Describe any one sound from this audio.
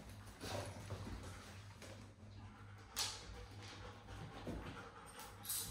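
A dog's paws patter and click on a rubber mat.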